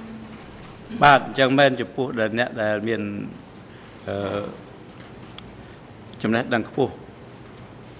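An older man speaks into a microphone.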